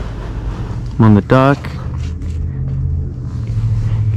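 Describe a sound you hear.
A boat trailer rolls and rattles over concrete.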